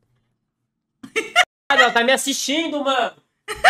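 A young woman laughs loudly and exclaims close to a microphone.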